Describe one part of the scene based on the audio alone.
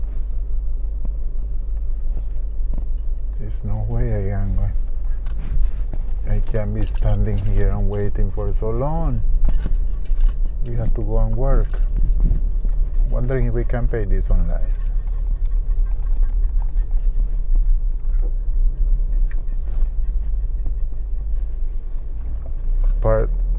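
A car engine hums low and steady.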